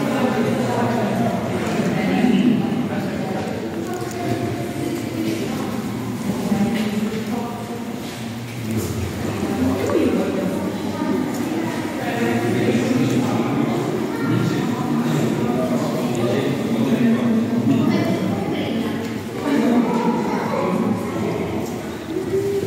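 A crowd of adult visitors chatter nearby, echoing in a large hollow space.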